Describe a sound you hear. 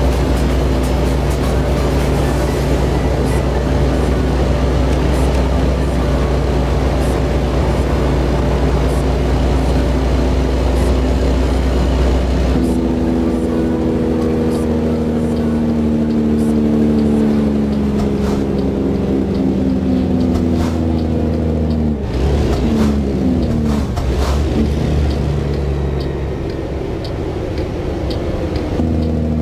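A truck engine drones steadily, its low hum shifting in pitch as gears change.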